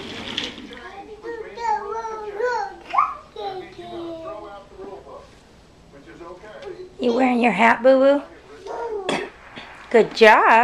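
A toddler girl babbles in a high voice close by.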